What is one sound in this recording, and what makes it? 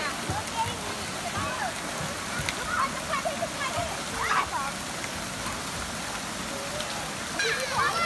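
Water splashes as children wade and slide.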